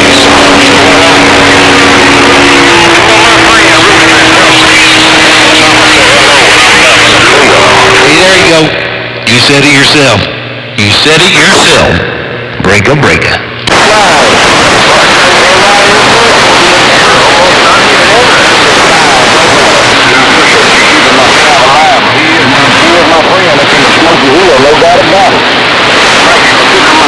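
A radio signal warbles and whistles through the static.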